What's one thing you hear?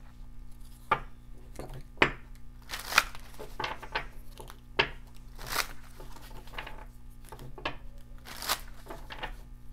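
Cards rustle and tap as they are handled and shuffled.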